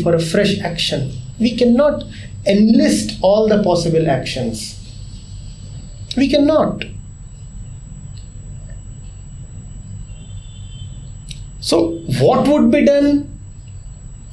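A middle-aged man speaks calmly with animation, close to a microphone.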